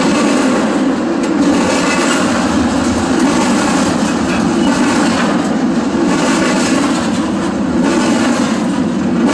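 Train wheels clatter and squeal on the rails.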